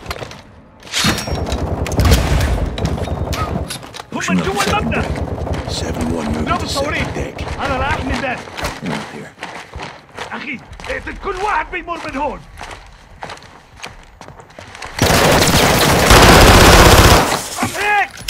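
Automatic gunfire rattles in loud bursts at close range.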